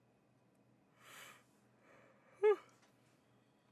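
A young woman yawns loudly, close to a microphone.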